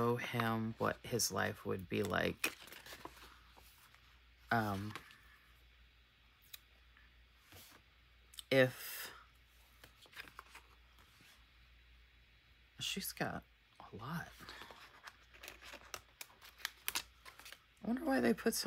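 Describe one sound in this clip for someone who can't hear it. A sticker peels off a paper backing with a soft crackle.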